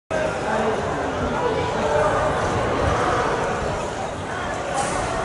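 A crowd of people chatter at a distance outdoors.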